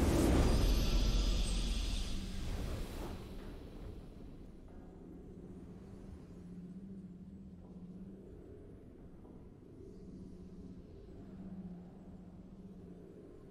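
A low humming tone plays steadily.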